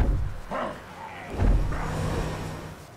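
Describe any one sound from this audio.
A heavy thud lands with a deep boom.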